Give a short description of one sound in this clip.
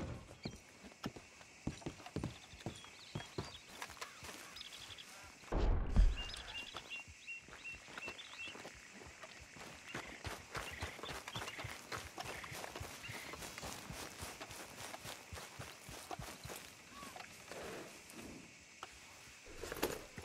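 Footsteps crunch on dirt and grass outdoors.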